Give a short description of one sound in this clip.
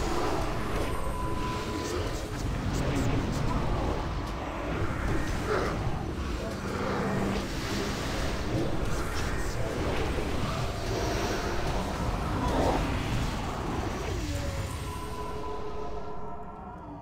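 Spell effects crackle and boom in a loud, busy battle.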